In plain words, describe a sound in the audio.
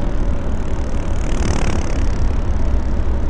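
A truck passes by on the road.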